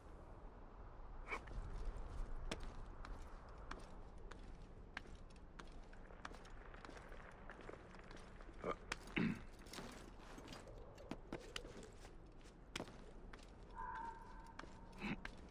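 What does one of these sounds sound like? Hands grip and scrape on rock during a climb.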